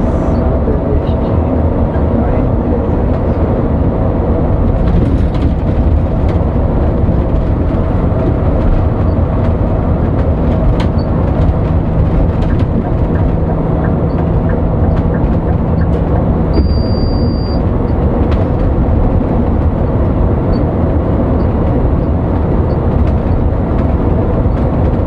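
A bus engine hums low and steady while driving.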